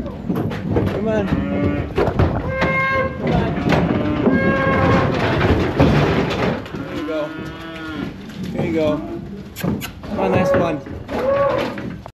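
Hooves clatter on a metal trailer floor.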